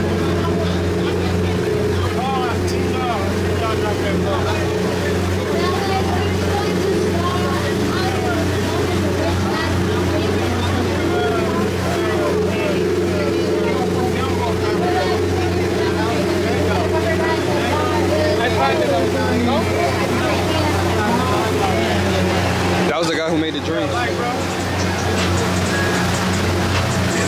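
A boat engine hums steadily and loudly.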